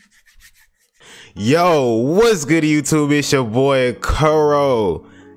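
A young man sings loudly and with animation into a close microphone, his voice sliding up and down.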